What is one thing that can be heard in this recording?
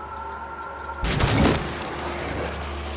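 An explosion booms with a heavy blast.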